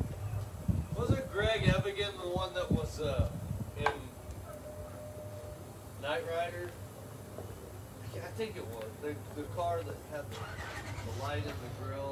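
A man speaks calmly nearby outdoors.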